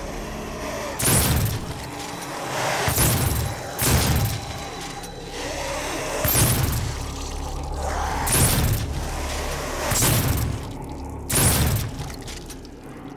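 A shotgun fires in loud booming blasts.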